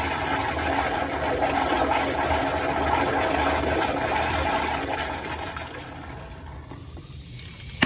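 Water rushes and swirls in a flushometer toilet bowl, then drains away.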